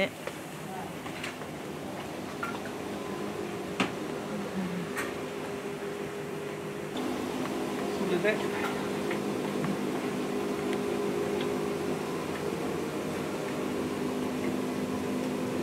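Industrial washing machines hum steadily.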